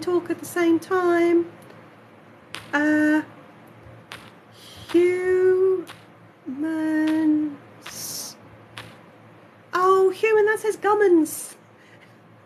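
A high, cartoonish voice speaks close by, in short bursts with pauses.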